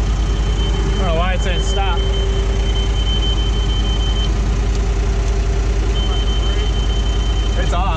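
An older man speaks briefly outdoors.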